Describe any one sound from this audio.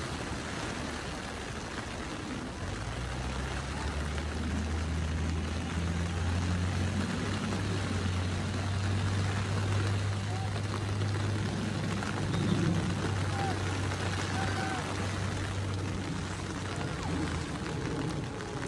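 Rain falls steadily outdoors with a soft, constant hiss.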